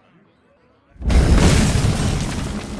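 A fanfare swells to announce a turn.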